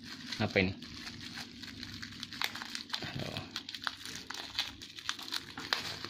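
Bubble wrap crinkles and rustles in hands.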